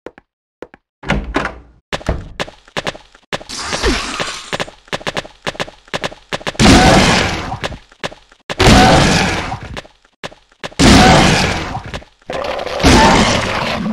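Heavy blows thud against a body.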